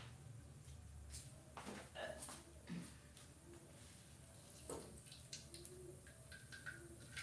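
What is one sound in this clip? Oil pours into a hot metal pan.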